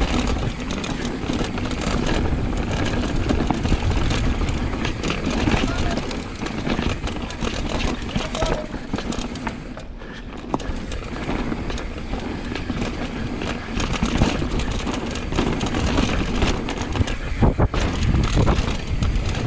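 Bicycle tyres rattle and crunch over a rough dirt trail.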